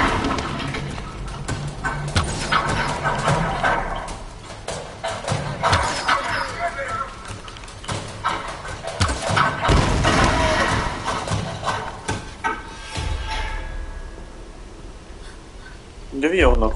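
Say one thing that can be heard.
A bowstring creaks as it is drawn taut.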